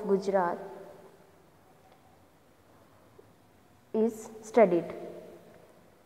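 A woman speaks calmly into a microphone in short bursts.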